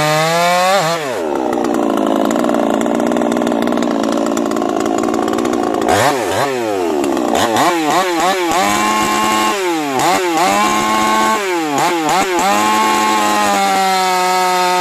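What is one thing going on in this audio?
A chainsaw cuts through a log, its engine straining.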